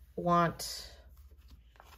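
A sticker peels off a backing sheet.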